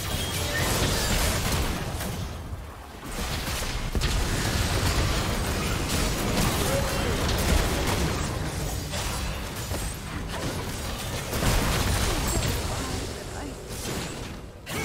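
Game spell effects and weapon hits clash and burst rapidly.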